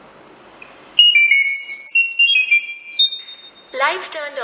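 A phone chimes with a quick run of high electronic tones.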